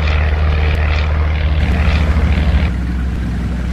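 An aircraft engine roars overhead.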